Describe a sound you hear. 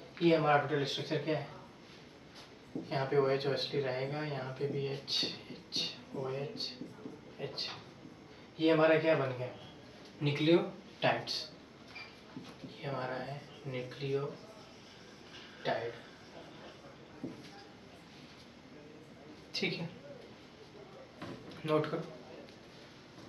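A young man speaks calmly, explaining, close by.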